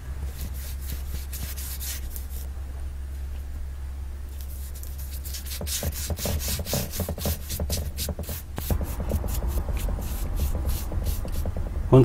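A paintbrush swishes in quick, repeated strokes against wood.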